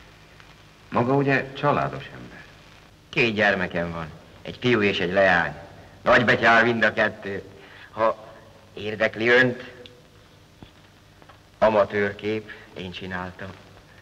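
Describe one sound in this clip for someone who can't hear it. A middle-aged man speaks calmly and warmly, close by.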